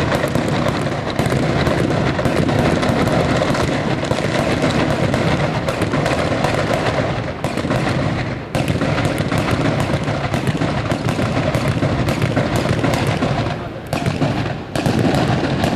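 Fireworks crackle and bang in rapid bursts, loud and close.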